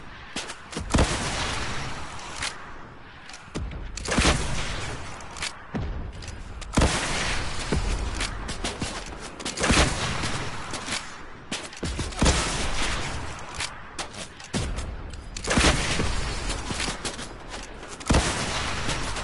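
Rocket launchers fire with sharp blasts, again and again.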